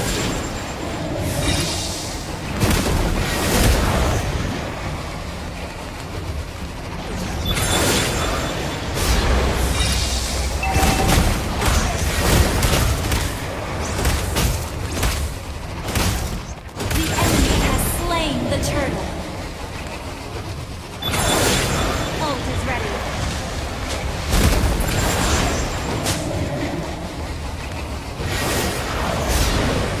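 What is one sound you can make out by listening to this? Game sound effects of spells and attacks burst and clash.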